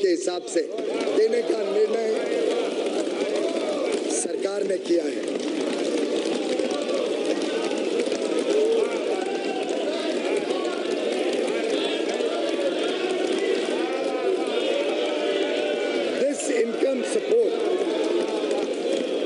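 A man speaks loudly and steadily into a microphone in a large hall.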